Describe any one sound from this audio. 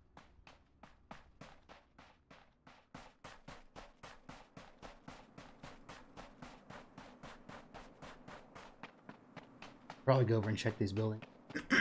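Footsteps crunch quickly and steadily through snow.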